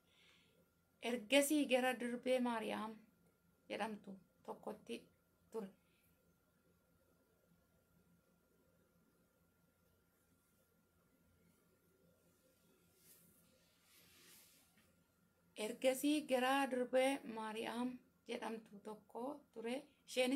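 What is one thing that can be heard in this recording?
A young woman speaks calmly through a microphone on an online call, pausing between phrases.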